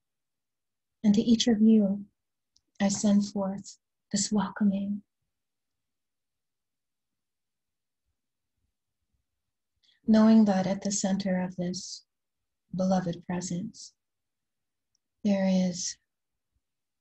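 A woman speaks calmly and slowly into a close microphone, with long pauses.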